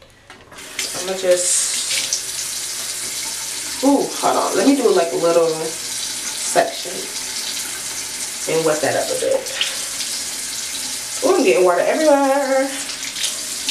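A young woman talks casually close to a microphone.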